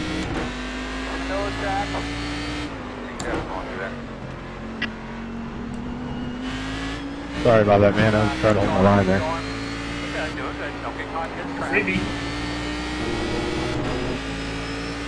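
A racing car engine hums steadily and shifts pitch as it speeds along.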